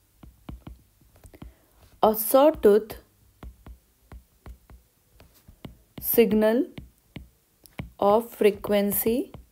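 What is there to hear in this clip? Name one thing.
A stylus taps and scrapes on a glass surface.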